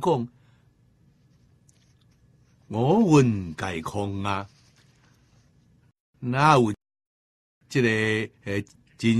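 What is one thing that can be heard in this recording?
An elderly man speaks slowly and expressively into a close microphone, with long pauses.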